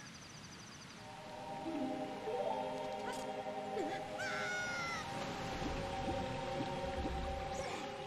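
Game music plays with a steady chiming melody.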